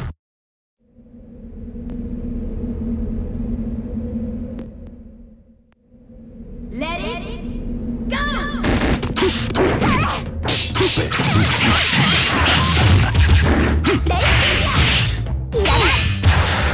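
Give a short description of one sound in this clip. Game music plays.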